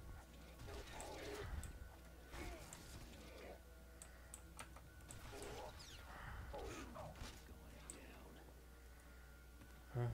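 Game combat sounds with blasts and zaps ring out.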